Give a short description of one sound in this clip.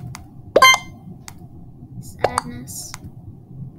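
A short electronic chime rings out twice.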